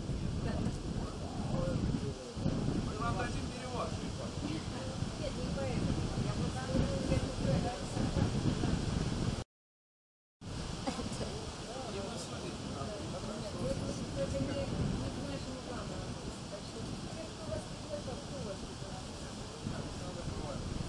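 Young men talk casually nearby outdoors.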